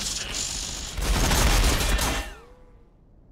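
Gunfire and explosions boom loudly, then die away.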